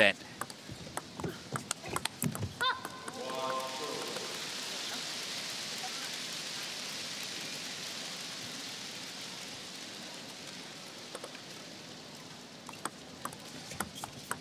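A ping-pong ball clicks sharply back and forth off paddles and a table.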